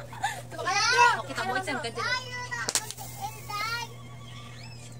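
Young girls talk and laugh close by with animation.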